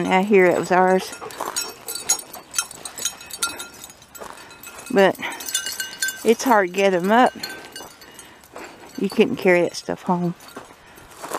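A dog yips and howls nearby.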